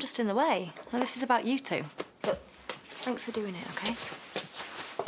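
A woman speaks with emotion, close by.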